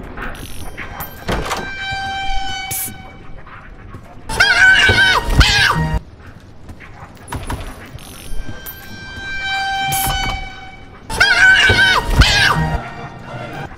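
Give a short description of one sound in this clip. A creature lets out loud, harsh shrieks in short bursts.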